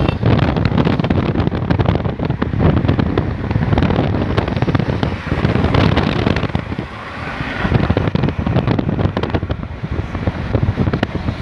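Wind rushes and buffets loudly past a moving vehicle.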